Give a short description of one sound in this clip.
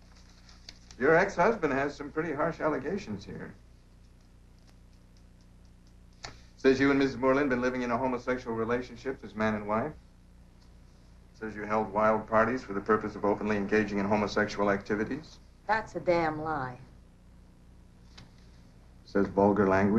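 An elderly man speaks calmly and firmly.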